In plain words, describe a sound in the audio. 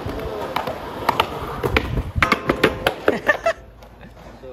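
Skateboard wheels roll and clatter on concrete.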